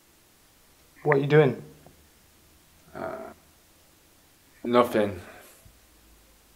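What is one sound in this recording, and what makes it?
A young man speaks calmly close by, in short bursts.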